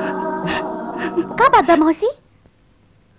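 A young woman speaks sharply.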